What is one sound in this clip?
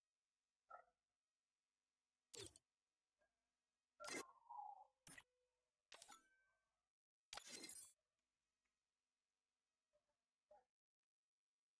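Short game menu sounds swoosh and chime as panels open and close.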